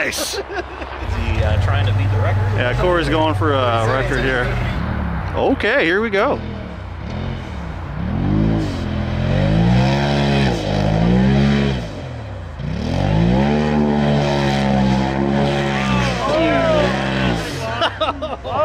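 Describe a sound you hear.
An off-road buggy engine revs hard and roars.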